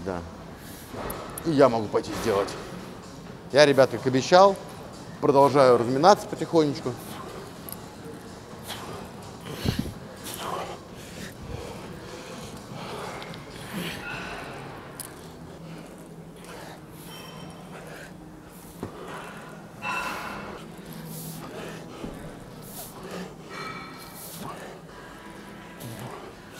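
Dumbbells clink and clank.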